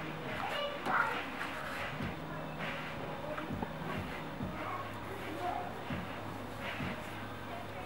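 Paintbrushes swish over wooden boxes.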